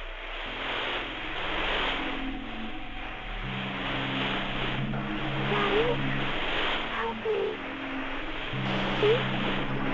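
Loud static hisses and crackles steadily.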